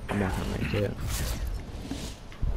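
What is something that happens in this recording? An electronic whoosh sweeps past.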